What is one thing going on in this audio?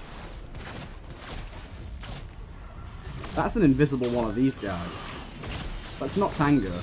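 Magic effects crackle and whoosh in a video game.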